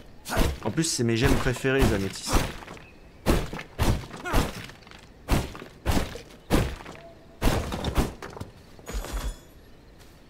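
An axe strikes hard rock again and again.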